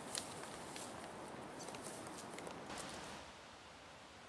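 Leaves and fern fronds rustle as someone pushes through brush.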